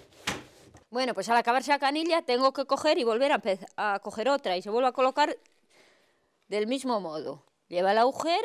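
A woman speaks calmly and close, through a clip-on microphone.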